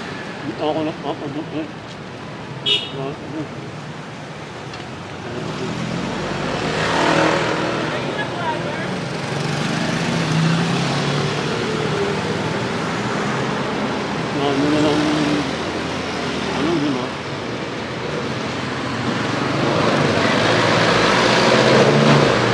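A middle-aged man speaks close to a headset microphone.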